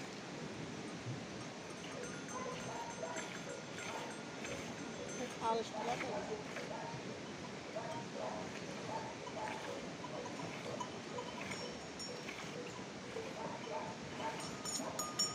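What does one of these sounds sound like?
Milk squirts in short spurts into a plastic bucket.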